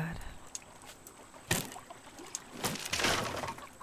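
A wooden plank thuds as it is set down.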